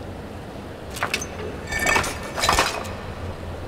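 A metal mechanism clicks and clanks as it is turned.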